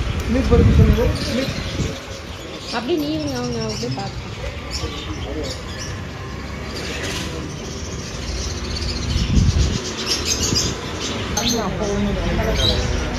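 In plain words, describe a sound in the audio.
A woman talks nearby in short bursts.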